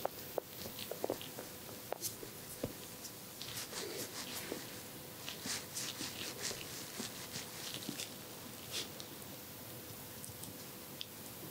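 Cotton rustles and scratches softly, very close by.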